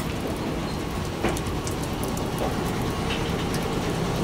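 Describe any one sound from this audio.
Wheels rumble and clack over rail joints.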